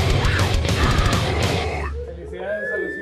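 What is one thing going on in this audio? A rock band plays loudly with pounding drums.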